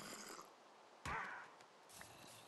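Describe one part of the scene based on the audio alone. A sword strikes a parrot.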